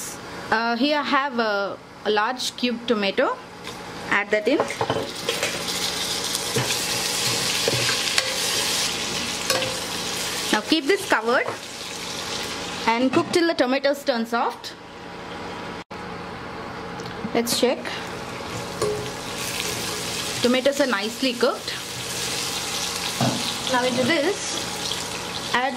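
Onions sizzle and crackle in hot oil.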